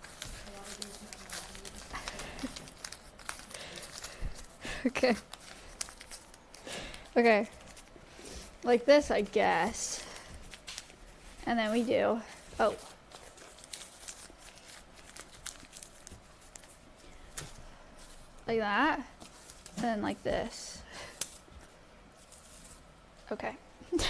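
Paper bags rustle and crinkle.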